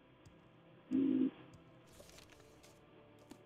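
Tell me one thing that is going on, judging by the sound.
A book opens with a paper rustle.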